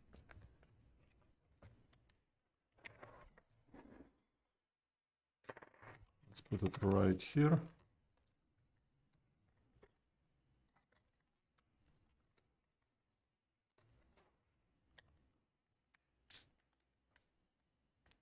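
A plastic pry tool scrapes and clicks against a laptop's casing.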